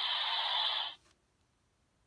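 A toy blaster plays a loud electronic whooshing sound effect.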